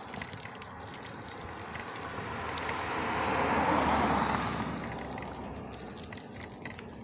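A car approaches and passes close by with a swelling, then fading rush.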